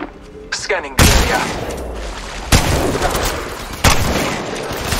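Gunshots boom loudly, each followed by a rumbling echo.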